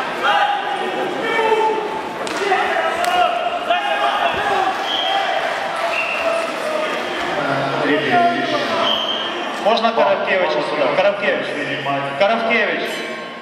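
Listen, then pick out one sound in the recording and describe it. Several men shout and cheer loudly in an echoing hall.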